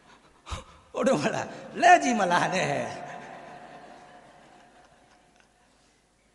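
A middle-aged man laughs into a microphone.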